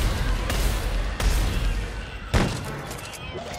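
A gun fires a few sharp shots.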